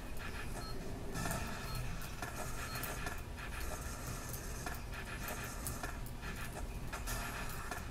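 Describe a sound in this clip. Skateboard wheels roll and grind along metal rails.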